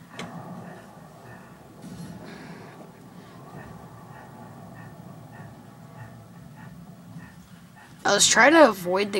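Game sound effects play faintly through a small speaker.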